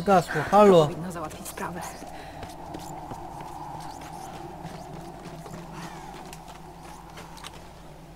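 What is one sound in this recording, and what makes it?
Footsteps run over wet ground.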